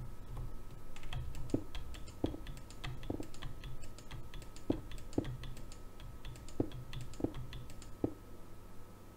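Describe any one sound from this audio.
Soft clicks tap out one by one as stone blocks are chiseled.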